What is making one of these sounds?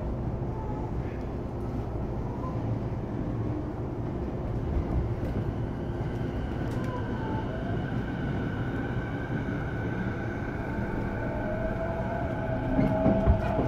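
An electric train hums and rumbles steadily along the tracks.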